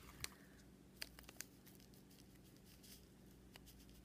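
A foil packet crinkles in someone's hands.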